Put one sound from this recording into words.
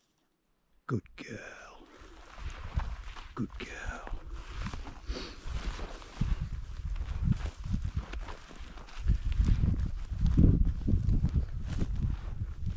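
Wind blows hard across open ground, gusting against the microphone.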